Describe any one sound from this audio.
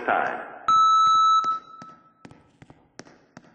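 An elevator chime rings once with a bright tone.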